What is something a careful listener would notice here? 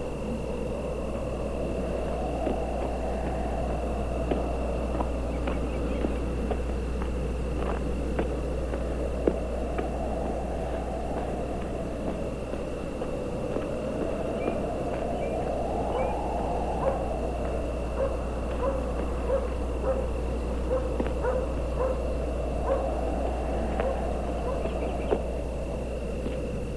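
Footsteps crunch on dry gravelly ground.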